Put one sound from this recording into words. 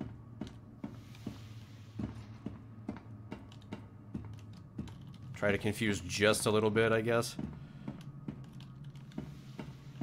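Footsteps tap at a steady pace on a hard floor.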